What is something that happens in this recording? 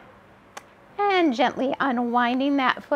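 A young woman speaks calmly and close.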